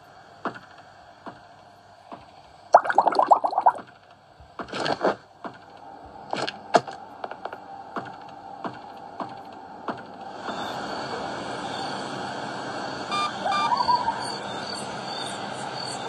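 Game sound effects play from a tablet's small speaker.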